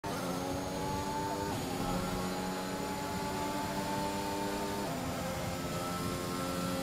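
A racing car engine whines at high revs, dropping briefly with each upward gear change.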